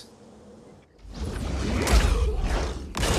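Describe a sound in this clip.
A heavy blow lands with a thud.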